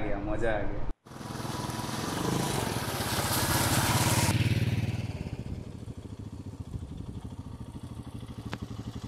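Shallow stream water rushes over stones.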